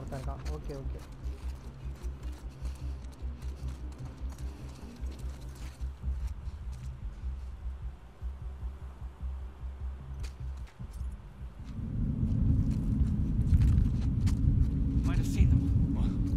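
Footsteps scuff on a hard path.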